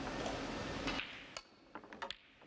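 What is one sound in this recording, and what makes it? A cue strikes a snooker ball.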